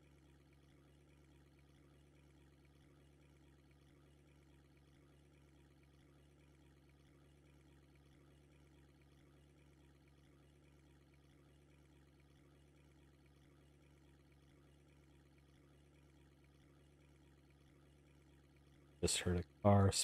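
Calm lake water laps softly.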